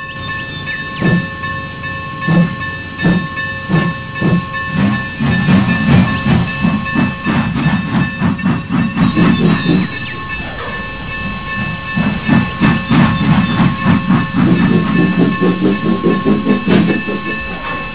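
A steam locomotive chuffs in a quickening rhythm as it pulls away.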